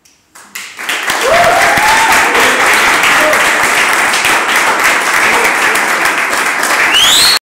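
An audience applauds loudly in an echoing room.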